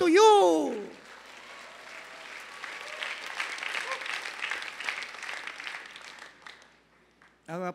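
A large audience applauds in a hall.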